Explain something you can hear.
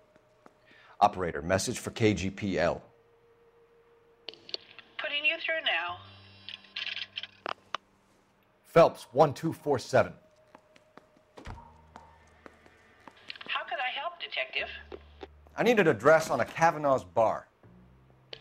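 A man speaks calmly into a telephone close by.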